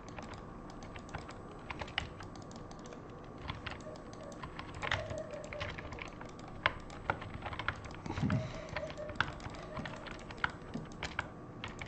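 Keys and a mouse click rapidly and close by.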